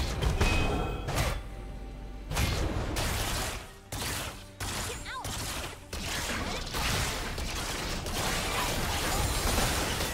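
Video game spells and weapon hits clash and burst during a battle.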